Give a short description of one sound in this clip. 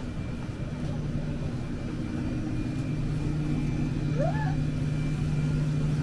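A shopping cart rolls and rattles along a hard floor.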